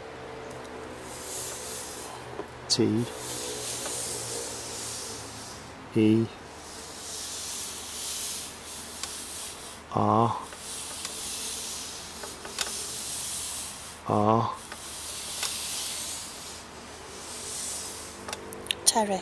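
A planchette slides and scrapes softly across a wooden board.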